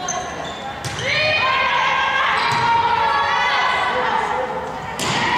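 A crowd of spectators cheers and yells.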